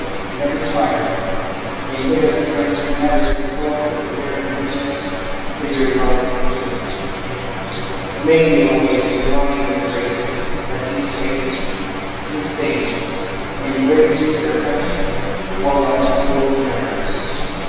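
A young man speaks steadily through a microphone in an echoing hall.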